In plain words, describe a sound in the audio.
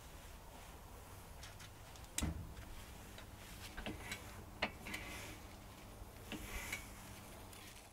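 Metal parts clink and knock.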